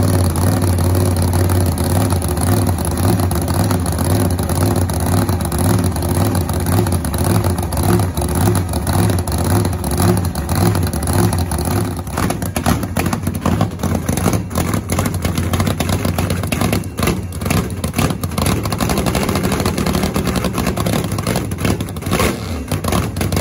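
A dragster engine idles loudly with a deep, throbbing rumble close by.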